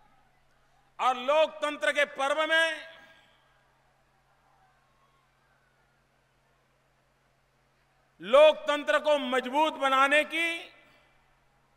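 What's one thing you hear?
A man speaks forcefully through a loudspeaker, in short bursts.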